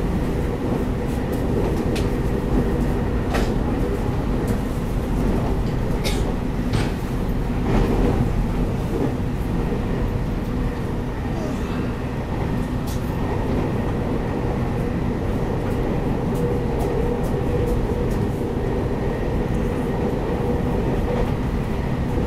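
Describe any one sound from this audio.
An electric multiple-unit train rumbles along at speed, heard from inside the carriage.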